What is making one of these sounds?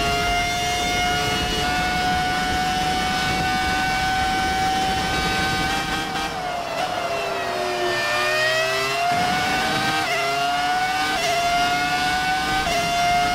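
A racing car engine screams at high revs, dropping in pitch as it slows for a corner, then rising again through quick gear shifts.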